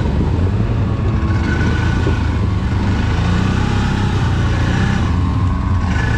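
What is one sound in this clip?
An off-road vehicle engine rumbles loudly up close as it drives.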